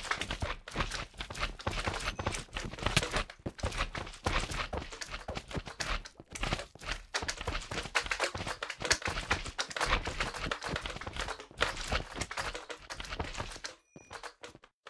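Soft squelching thuds sound as a sword repeatedly strikes bouncing slime creatures.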